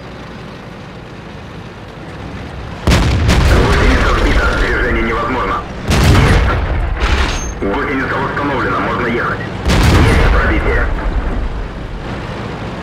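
A tank engine rumbles low and steadily.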